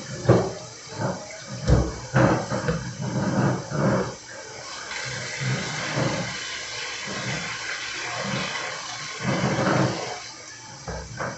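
Water runs from a tap into a basin.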